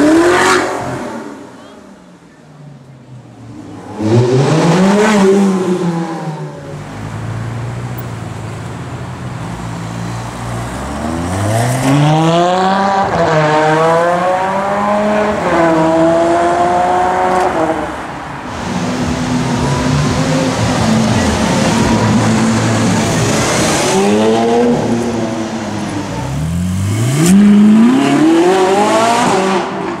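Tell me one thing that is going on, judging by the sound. A sports car engine revs loudly and roars past.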